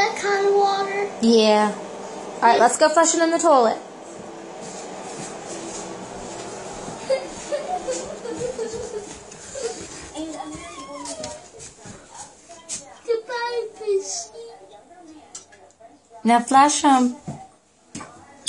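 A young boy talks close by with animation.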